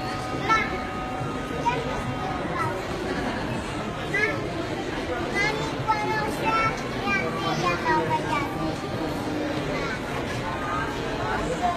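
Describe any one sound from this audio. A crowd murmurs in an echoing hall.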